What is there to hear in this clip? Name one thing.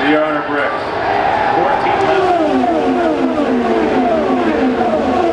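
Race car engines scream past at high speed, their pitch dropping as they go by.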